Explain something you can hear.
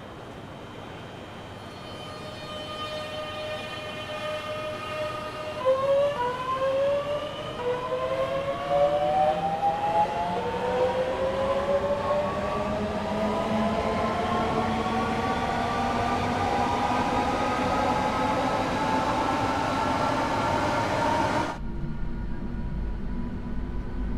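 Train wheels rumble along the track.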